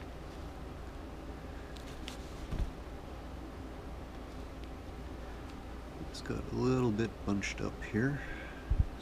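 Thread pulls through fabric with a soft rustle.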